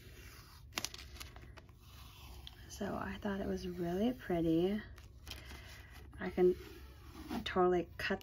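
Sticky tape rustles as it is unrolled from a roll.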